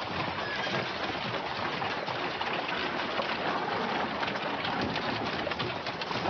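Horses' hooves clop on a dirt path.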